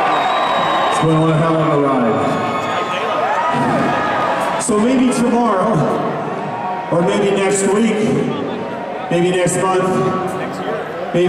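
A man sings through loudspeakers over the crowd.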